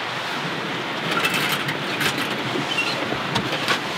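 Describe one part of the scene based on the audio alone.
A metal stove door latch clicks open.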